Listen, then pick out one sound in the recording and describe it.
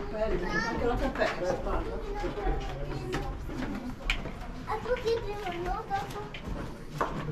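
Women talk casually nearby in an echoing room.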